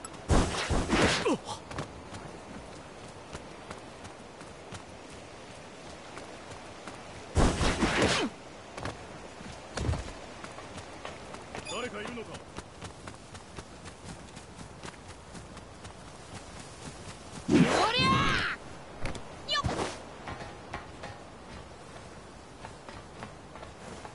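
Quick footsteps patter on stone paving.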